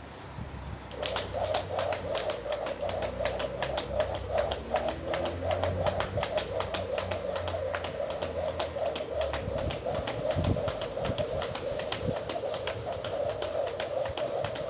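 A skipping rope whirs and slaps the ground quickly and steadily.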